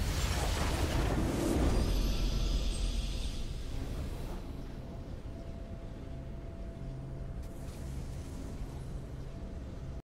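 A triumphant fanfare swells up.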